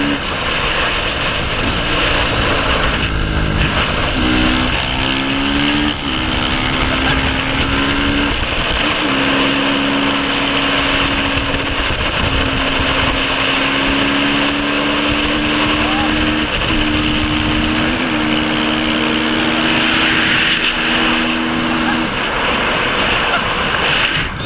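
A motorcycle engine revs and shifts gears up close.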